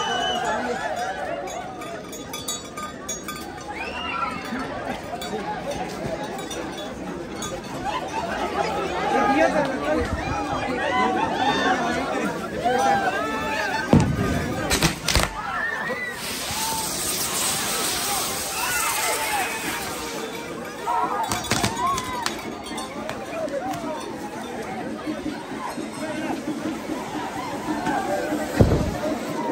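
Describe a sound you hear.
A lively crowd of men, women and children chatters and calls out outdoors.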